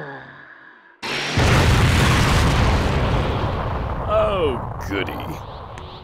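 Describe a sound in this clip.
A huge explosion booms and roars on.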